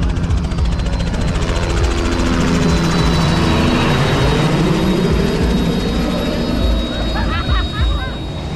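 A helicopter engine roars and its rotor thumps overhead, passing by.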